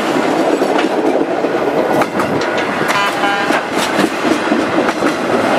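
Wheels squeal and clank over rail joints.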